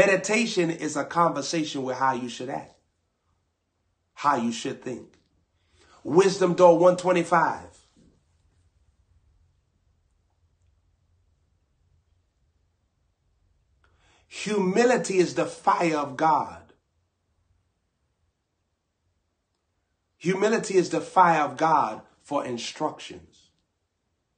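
A young man talks with animation into a nearby microphone, pausing now and then.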